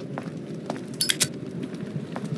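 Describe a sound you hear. A lighter flicks open and sparks alight.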